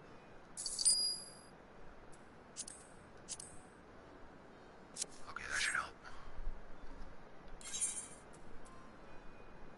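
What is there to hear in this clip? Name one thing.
Short electronic chimes and clicks sound from a game menu.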